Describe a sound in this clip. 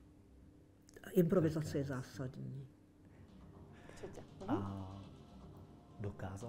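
An elderly woman speaks calmly close by.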